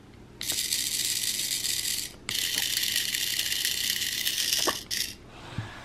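A small toy motor whirs at a high pitch in steady bursts.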